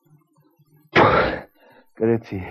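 A man sniffs loudly.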